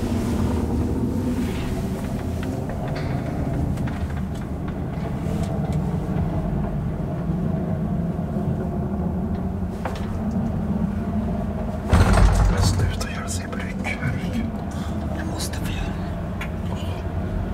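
The elevator car rattles and clanks as it travels.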